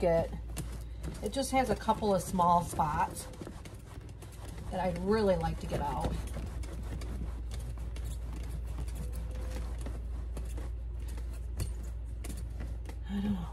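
A cloth rubs against a leather bag.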